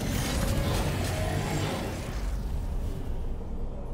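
Electricity crackles and buzzes loudly.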